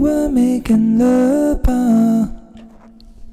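A man sings into a microphone close by.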